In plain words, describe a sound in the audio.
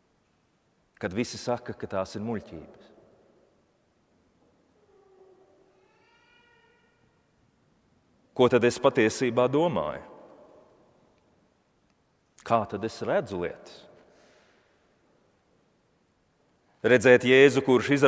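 A man speaks or chants slowly in phrases through a microphone, echoing in a large hall.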